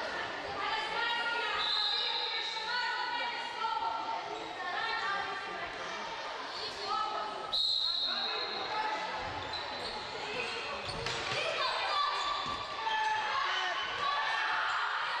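Sneakers squeak sharply on a hard court floor in an echoing hall.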